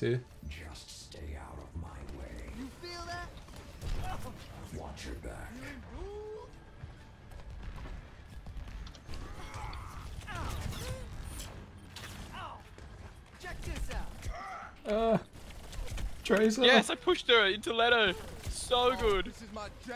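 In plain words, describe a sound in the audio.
Game weapons fire in rapid bursts with sharp blasts.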